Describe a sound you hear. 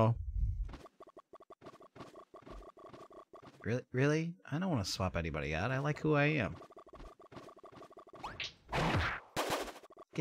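Cartoonish game sound effects pop and whoosh.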